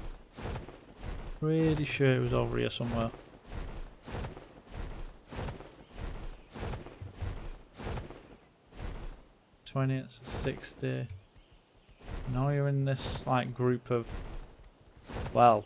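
Large wings flap in a steady, quick rhythm.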